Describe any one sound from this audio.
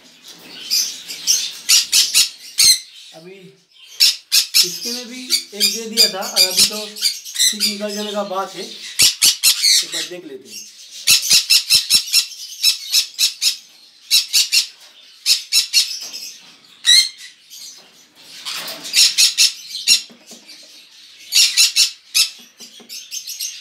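Small birds chirp and squawk sharply.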